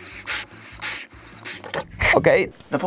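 A man breathes in sharply from a balloon.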